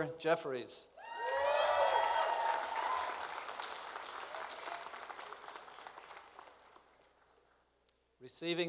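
An audience applauds and cheers, then fades.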